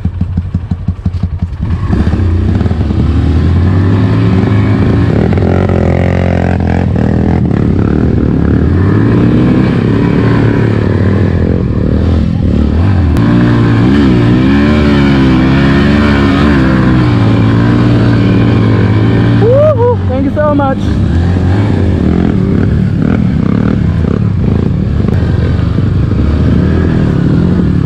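A dirt bike engine revs loudly close by, rising and falling in pitch.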